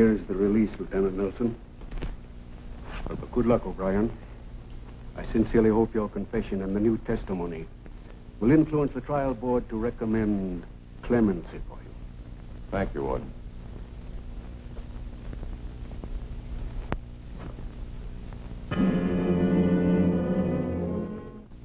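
A younger man answers in a low voice.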